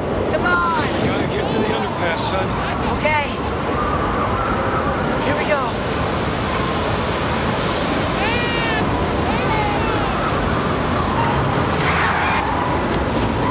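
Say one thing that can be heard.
A siren wails nearby, rising and falling.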